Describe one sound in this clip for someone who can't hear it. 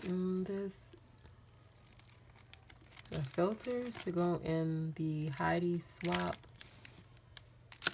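Stiff paper rustles as it is handled and bent.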